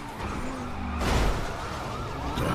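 Car tyres screech as the car skids through a turn.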